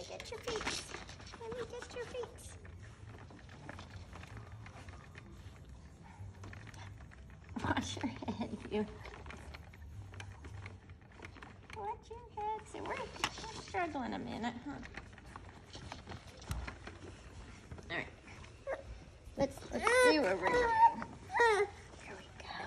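A young woman talks to a baby close by in a playful, sing-song voice.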